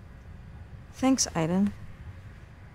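A young woman speaks briefly and quietly.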